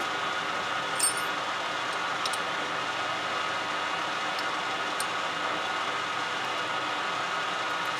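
Metal clinks as a hand adjusts a lathe tool post.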